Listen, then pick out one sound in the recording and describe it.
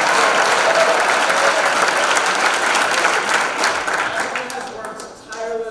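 A large audience applauds loudly in a big hall, the clapping fading away.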